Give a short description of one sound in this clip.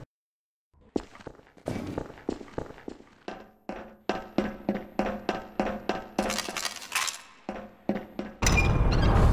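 Footsteps clang steadily on a metal floor.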